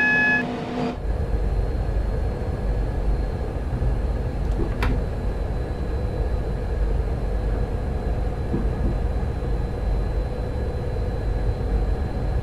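A train cab hums with a low, steady rumble as the train runs along the tracks.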